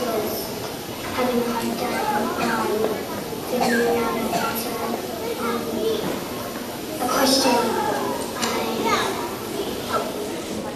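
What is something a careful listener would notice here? A young boy speaks through a loudspeaker in a room.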